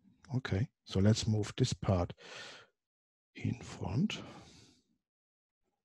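A man speaks calmly and explains into a close microphone.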